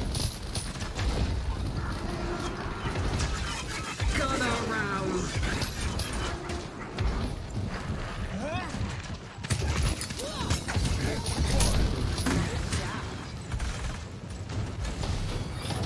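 Fiery blasts roar and explode.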